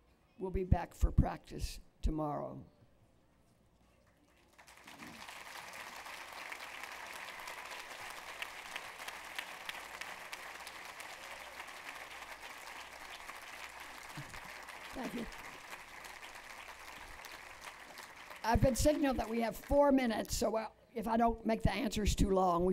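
An elderly woman speaks calmly into a microphone, heard through a loudspeaker.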